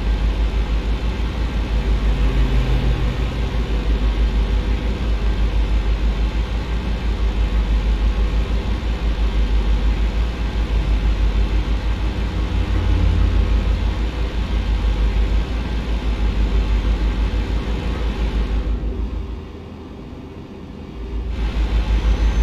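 A truck's diesel engine drones steadily with a deep, pulsing throb.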